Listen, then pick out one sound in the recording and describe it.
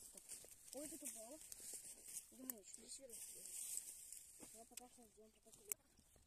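Dry plant stalks rustle and crackle as they are pulled.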